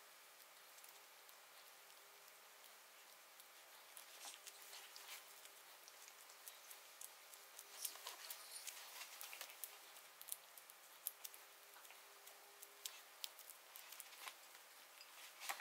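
Gloved fingers press and squish sticky filling with soft crinkling clicks.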